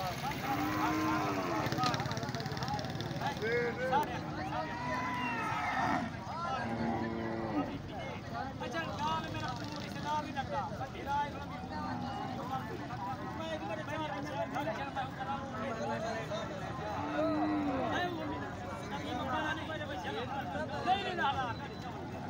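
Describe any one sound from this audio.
Many men talk and call out in a busy crowd outdoors.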